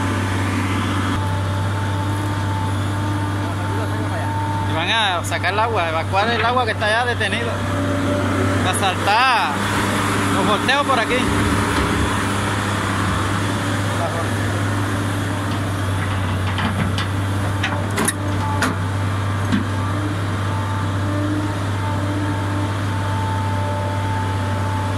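A diesel excavator engine rumbles steadily close by.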